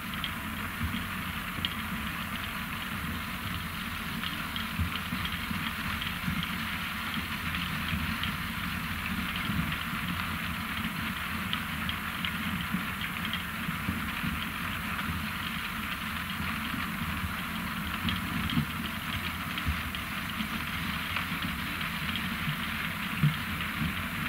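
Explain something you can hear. Beets clatter and tumble off a conveyor onto a pile.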